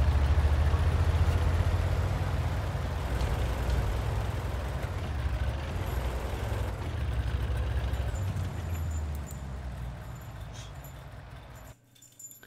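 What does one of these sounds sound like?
A tank engine rumbles deeply as the tank drives over rough ground.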